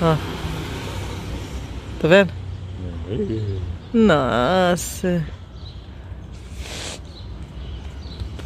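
A car engine hums low as a car slowly turns in the street.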